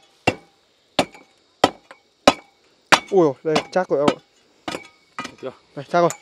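A metal pipe clanks sharply several times.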